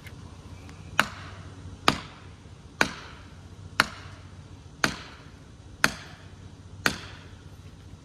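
A man strikes a metal wedge with a hammer in sharp, ringing blows.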